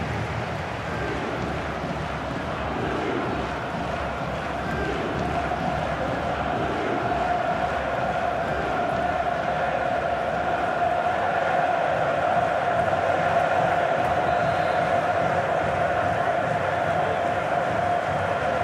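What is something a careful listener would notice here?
A large stadium crowd roars and chants steadily, growing louder.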